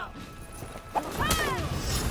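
A blade strikes with a sharp metallic clang.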